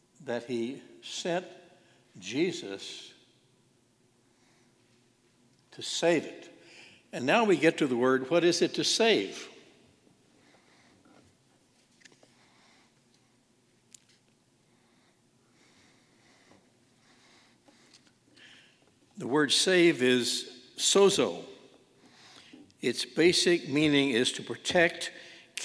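An elderly man speaks slowly and deliberately into a microphone, with long pauses, in a room with some echo.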